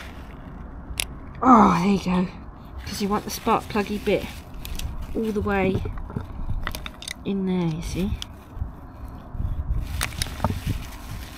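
Small plastic parts click and rattle as they are handled close by.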